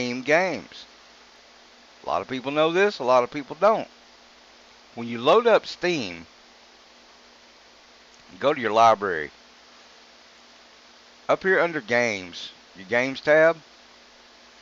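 A man talks casually into a close microphone, in short bursts with pauses.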